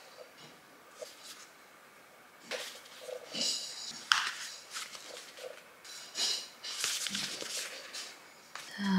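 A wallet rustles and clicks as hands open and fold it.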